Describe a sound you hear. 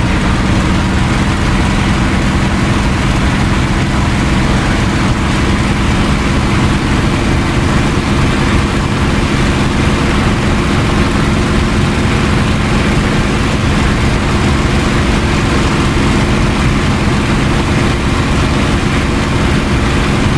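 A propeller plane's engine drones loudly and steadily, heard from inside the cockpit.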